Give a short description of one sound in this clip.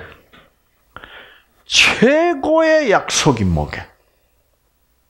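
An elderly man speaks with animation through a headset microphone.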